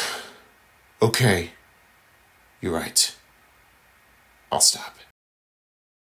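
A cartoonish voice shouts in short, excited bursts.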